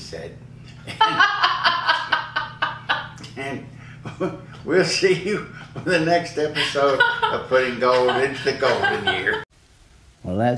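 A woman laughs loudly and heartily.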